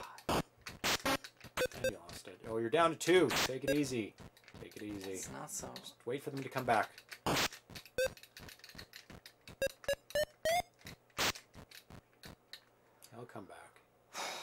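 Retro video game sound effects beep and blip.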